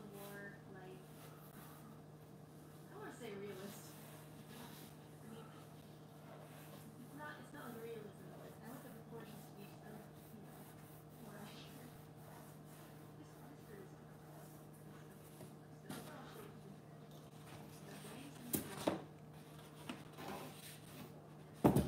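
Stiff boards tap and scrape as a person handles them.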